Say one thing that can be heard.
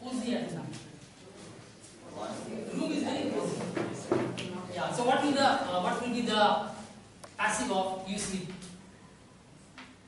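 A man speaks with animation to a group in an echoing room.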